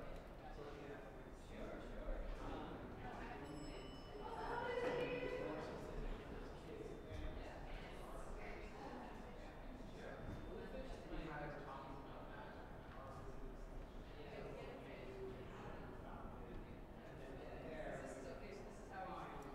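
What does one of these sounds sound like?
A woman talks calmly, close by.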